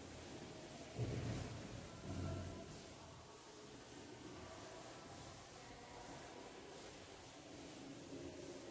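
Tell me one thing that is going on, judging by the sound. A cloth duster rubs softly across a chalkboard.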